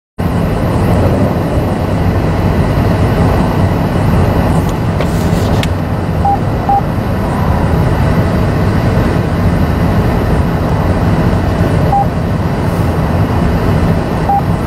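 Traffic roars past steadily on a busy highway nearby.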